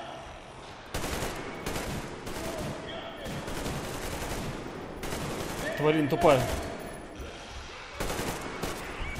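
A rifle fires rapid bursts of shots.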